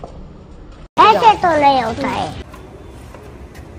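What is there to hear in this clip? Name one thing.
A small boy speaks with animation.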